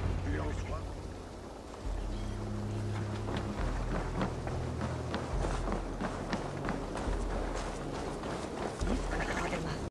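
Footsteps run quickly over wooden boards and then dirt.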